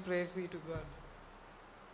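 A teenage boy reads aloud calmly through a microphone.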